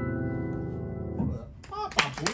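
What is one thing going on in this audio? A piano chord rings out and fades.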